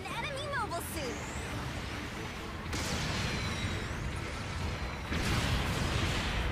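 Explosions rumble heavily.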